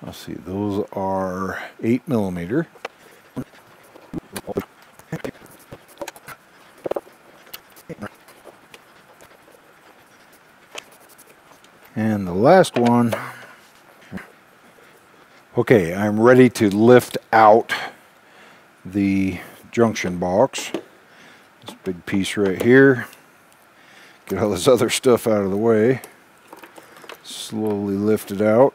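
A man speaks calmly and close by, in short phrases with pauses.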